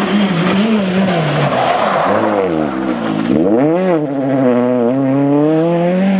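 Tyres skid and scrabble on loose gravel.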